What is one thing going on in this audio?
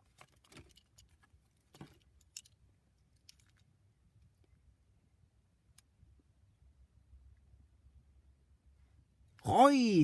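Small plastic pieces click together in a hand.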